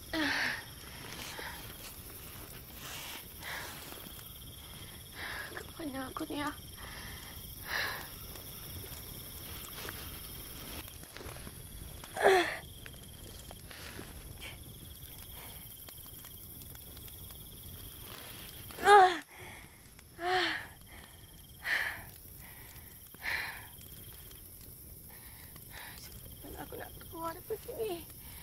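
A young woman speaks in short bursts, close by.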